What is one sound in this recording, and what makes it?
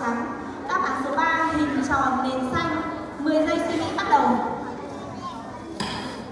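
A woman speaks with animation through a microphone and loudspeakers in a large echoing hall.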